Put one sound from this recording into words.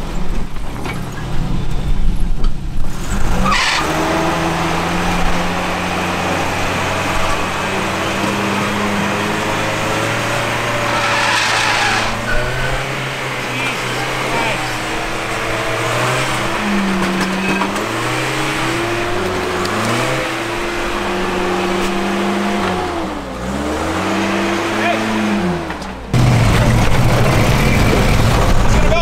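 A truck engine revs hard and labours.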